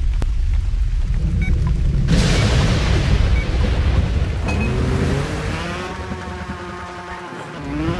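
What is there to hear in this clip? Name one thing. A motorbike engine revs and rumbles.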